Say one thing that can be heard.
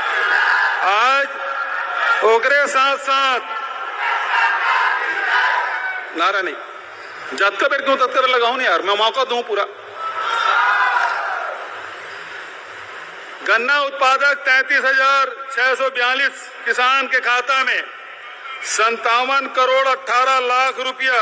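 An older man speaks forcefully into a microphone, heard through loudspeakers in a large open space.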